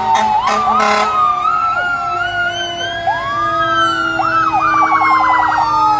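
A fire truck's engine rumbles as it rolls by.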